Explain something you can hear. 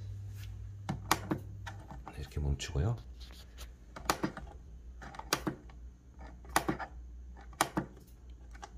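Fingers click the controls of a device.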